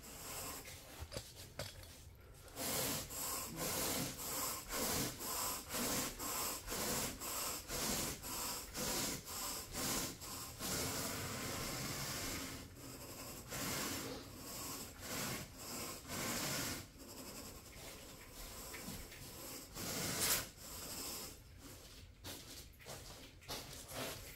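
A carpet rake scrapes rhythmically through thick carpet.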